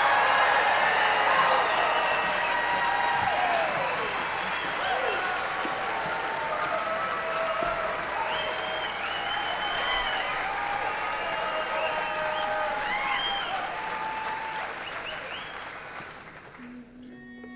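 A group of men sing together in harmony.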